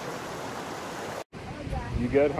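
A river rushes over rocks.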